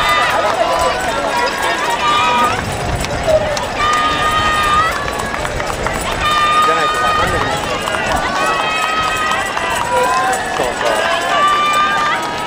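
A crowd of spectators cheers and shouts close by.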